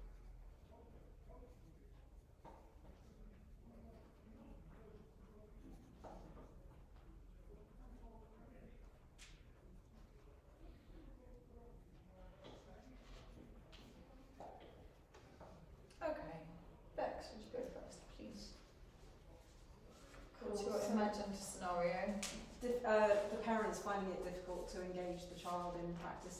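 A woman speaks calmly nearby, quietly at first and louder toward the end.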